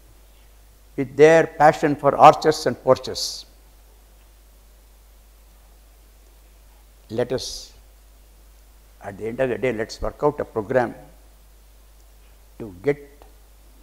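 An elderly man speaks calmly into a microphone, in pauses.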